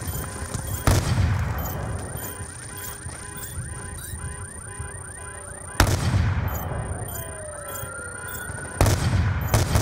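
A sniper rifle fires loud, booming shots that ring out and slowly fade.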